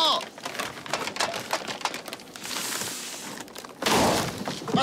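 A man breathes heavily into a paper bag, crinkling it.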